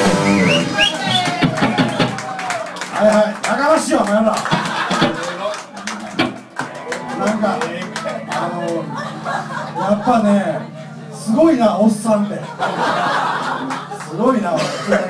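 A band plays loudly in a small room, with electric guitar and drums.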